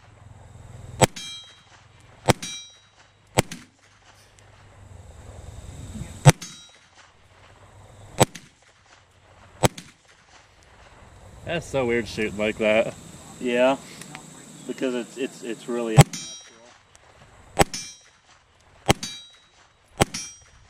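A gun fires single sharp shots outdoors, one at a time.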